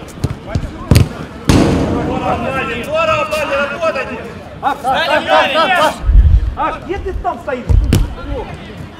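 A football is kicked with sharp thuds.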